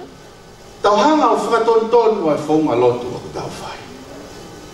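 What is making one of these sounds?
A man sings through a microphone with a strong, ringing voice.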